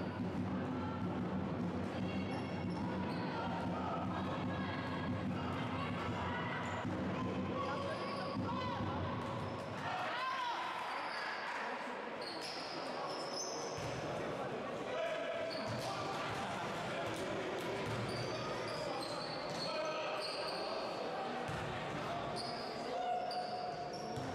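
Players call out and voices echo in a large hall.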